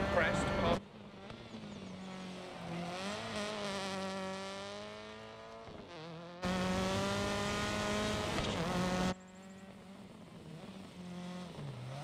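A turbocharged flat-four rally car revs hard and shifts through its gears.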